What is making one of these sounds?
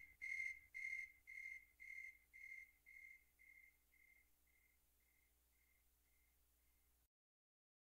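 A metronome beeps at a steady pace, growing softer and fading away.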